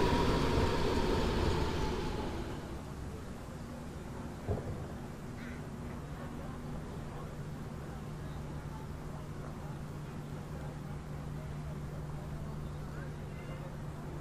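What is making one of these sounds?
An electric train's motor hums steadily.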